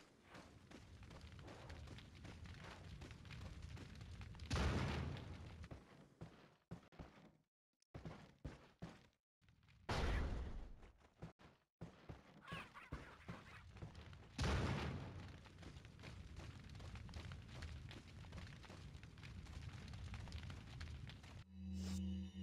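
Footsteps crunch and thud steadily on the ground.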